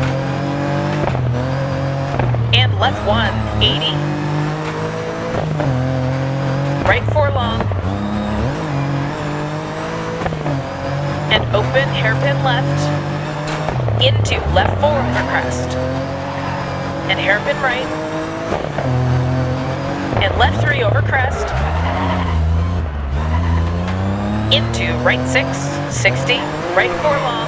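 A rally car engine roars, revving up and dropping with each gear change.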